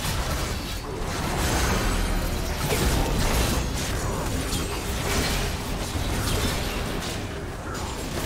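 Video game spell and weapon effects blast and clash during a fantasy battle.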